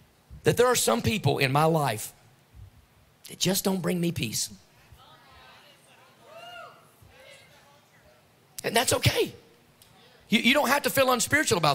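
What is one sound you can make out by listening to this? A middle-aged man speaks with animation through a microphone and loudspeakers, in pauses.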